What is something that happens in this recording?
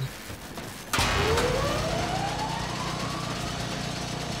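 A machine powers up with a loud hum and a rising whine.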